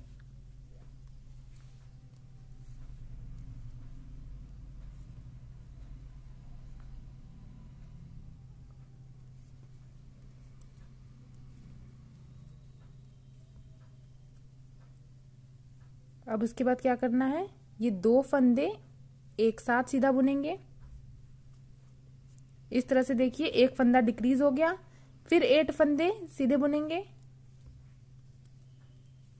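Knitting needles tick and scrape softly against each other.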